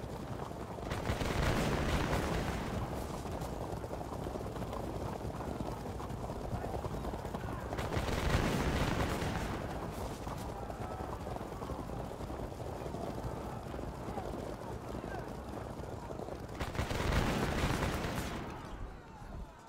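A volley of musket fire crackles and booms.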